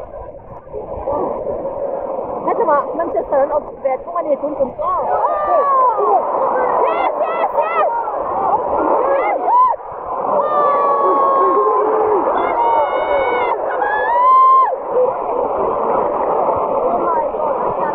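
Football fans sing and chant loudly together.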